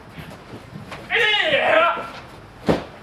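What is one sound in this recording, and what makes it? A man shouts sharply.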